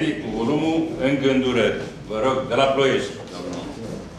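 An older man reads out aloud.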